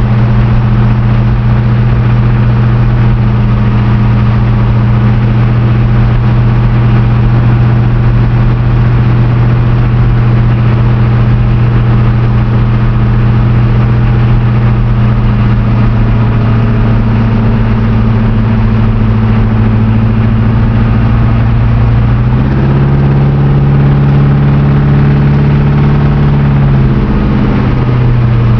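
A car engine hums steadily from inside the car, its tone shifting lower and louder near the end.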